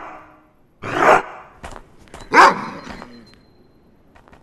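A wolf snarls and bites.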